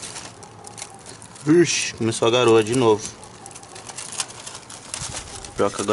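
A plastic kite rustles and crinkles as it is handled.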